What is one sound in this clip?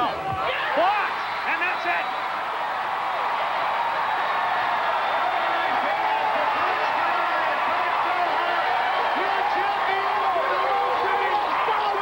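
A large outdoor crowd cheers and roars loudly.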